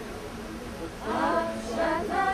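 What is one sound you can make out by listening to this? A woman sings loudly close by.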